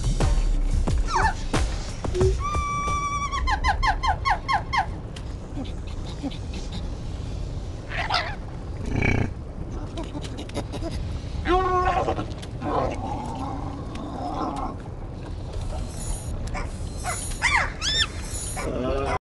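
A small creature chirps and squeaks in bursts.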